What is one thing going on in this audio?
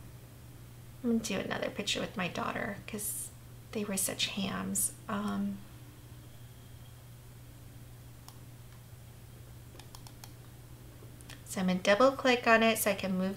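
A woman talks calmly and close to a microphone, with pauses.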